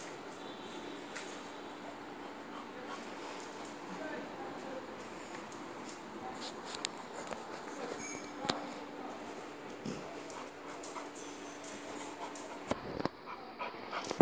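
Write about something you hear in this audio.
Two dogs sniff and snuffle at each other up close.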